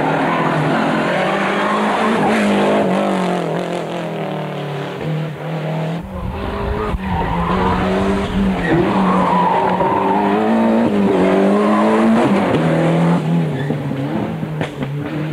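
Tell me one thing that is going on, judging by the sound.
A rally car engine roars loudly as it speeds past.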